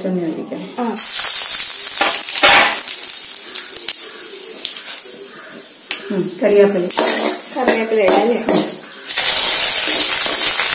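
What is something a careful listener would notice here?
Spices sizzle and crackle in hot oil.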